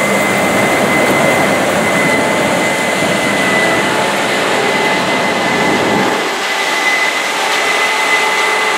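Corn stalks crackle and rustle as a harvester cuts through them.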